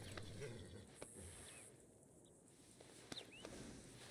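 A hand pats a horse's neck a few times.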